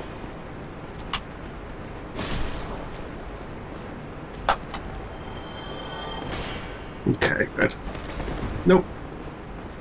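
Swords clang and strike in a game fight.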